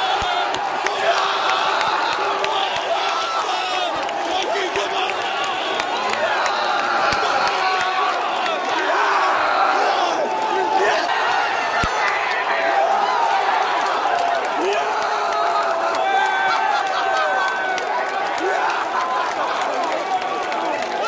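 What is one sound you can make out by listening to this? A crowd of fans cheers and shouts excitedly.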